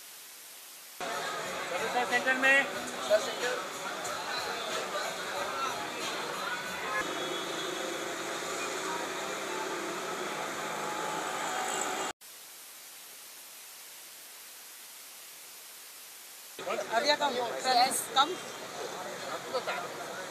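A crowd chatters.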